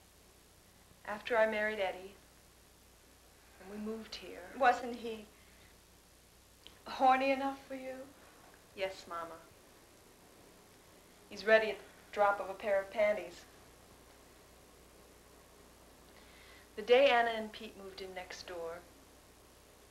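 A young woman speaks calmly and quietly nearby.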